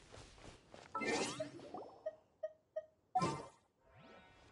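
Magical chimes sparkle and shimmer.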